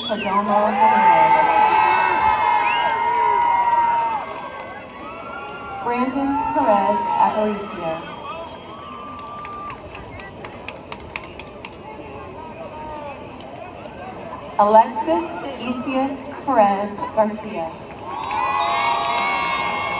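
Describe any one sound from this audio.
A crowd cheers and whoops loudly outdoors.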